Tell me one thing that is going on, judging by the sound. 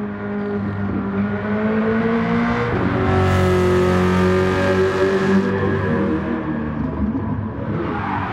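A car engine roars loudly, shifting gears as the car speeds along a track.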